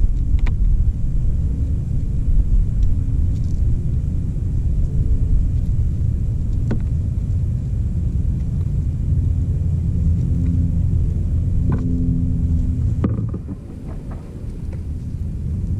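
Doves peck at gravel with light taps.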